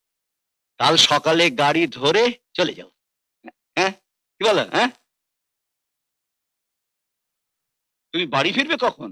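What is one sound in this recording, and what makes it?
A middle-aged man talks close by with animation.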